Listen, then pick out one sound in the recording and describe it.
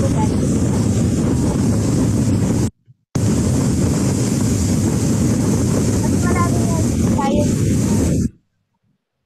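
Ocean waves roll and crash onto a shore in a steady roar.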